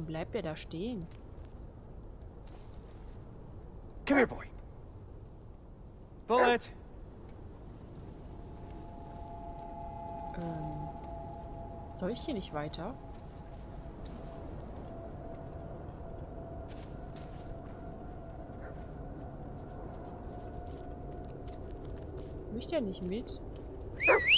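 A young woman speaks briefly and calmly into a close microphone.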